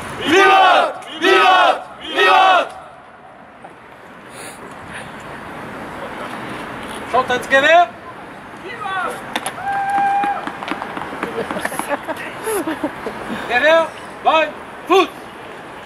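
A man shouts loud drill commands outdoors.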